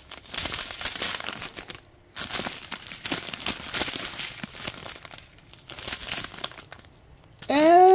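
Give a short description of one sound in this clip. Plastic bags crinkle and rustle as hands handle them.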